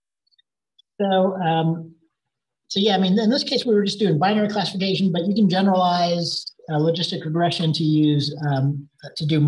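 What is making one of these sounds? A man speaks calmly through a microphone on an online call.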